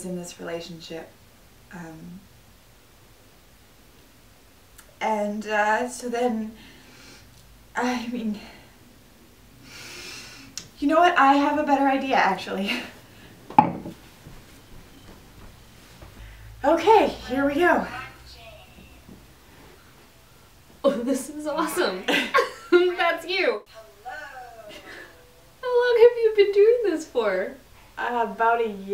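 A second young woman talks and laughs nearby.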